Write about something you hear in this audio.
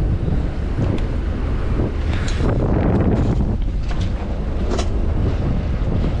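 Wind buffets the microphone outdoors on open water.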